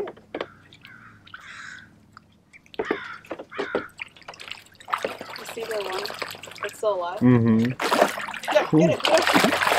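Water splashes as ducks paddle and dabble.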